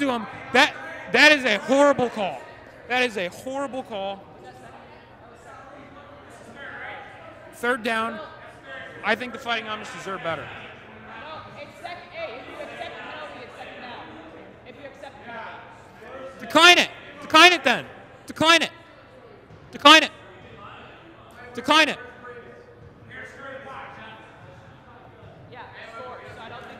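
Young men talk and call out to each other in a large echoing hall.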